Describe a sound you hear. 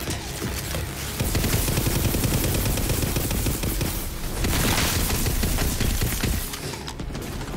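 Electric crackling zaps burst around.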